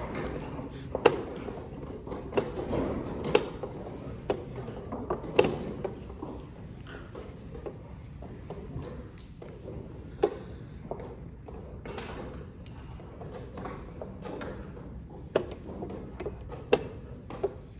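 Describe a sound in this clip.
A chess clock button clicks.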